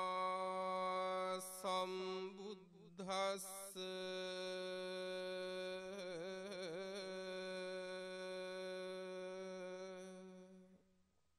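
A man chants in a slow, drawn-out, steady voice through a microphone.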